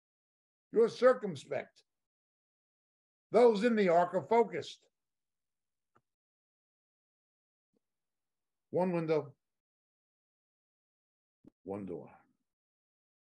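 An older man speaks calmly into a close microphone, in short bursts with pauses.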